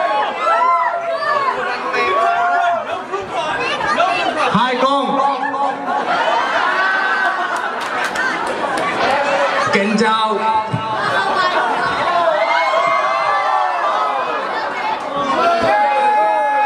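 A young man sings through a microphone and loudspeakers.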